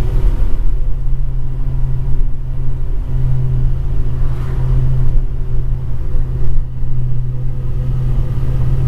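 A heavy truck engine drones steadily from inside the cab.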